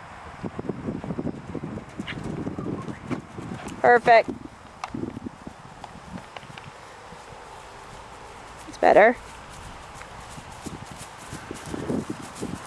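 A horse's hooves thud on grass as it canters.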